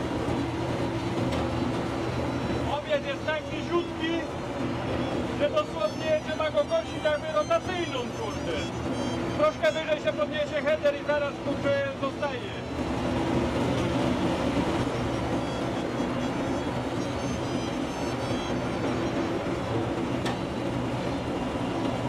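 A combine harvester's engine drones steadily.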